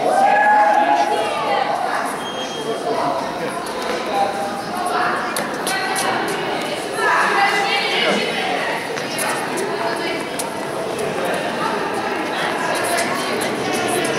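A tennis ball thuds on a hard floor.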